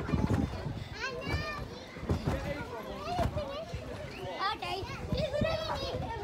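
Young children shout and squeal playfully nearby.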